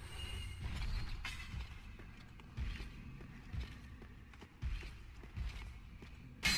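Heavy armored footsteps clank on stone.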